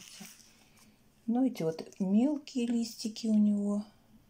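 Plant leaves rustle softly as fingers handle them.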